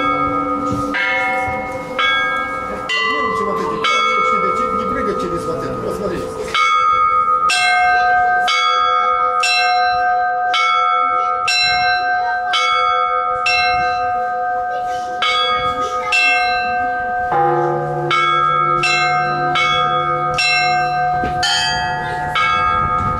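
Small bells ring out in a quick rhythmic peal, their tones ringing on and overlapping.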